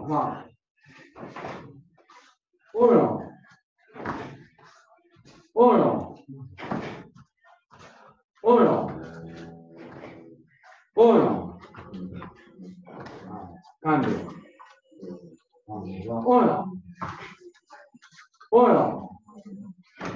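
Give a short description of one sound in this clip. A man calls out loud commands.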